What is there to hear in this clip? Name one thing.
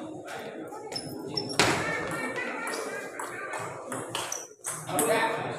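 A table tennis ball clicks sharply back and forth off paddles and the table.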